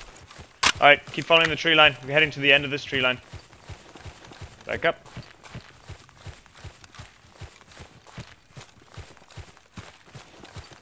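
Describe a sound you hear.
Footsteps crunch steadily over dry leaves and grass.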